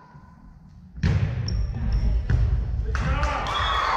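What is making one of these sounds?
A volleyball thumps off players' arms.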